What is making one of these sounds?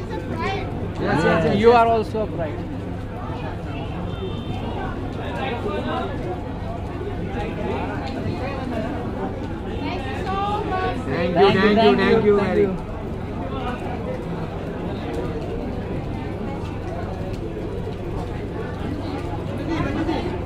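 Men and women chatter in the background.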